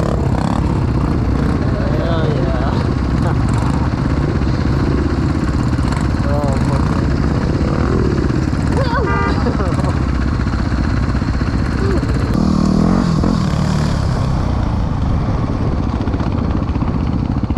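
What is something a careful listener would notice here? Another dirt bike engine revs up and down nearby.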